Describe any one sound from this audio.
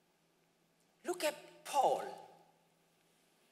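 A man speaks with emphasis into a microphone.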